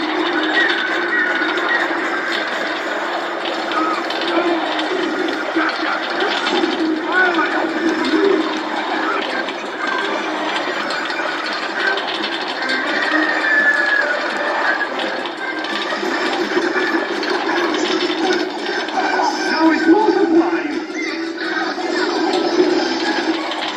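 A minecart rattles steadily along rails.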